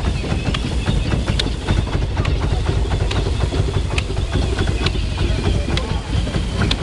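A machine's wheel spins, rattling and clattering steadily.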